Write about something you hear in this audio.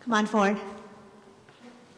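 A woman speaks briefly through a microphone in a large echoing hall.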